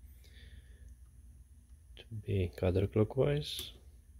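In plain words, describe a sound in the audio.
A small button clicks when pressed.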